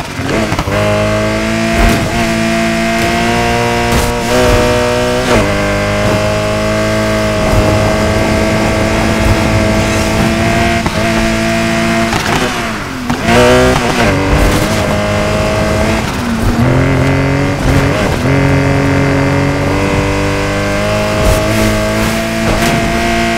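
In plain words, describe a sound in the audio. A sports car engine roars at high revs, dipping briefly at each gear change.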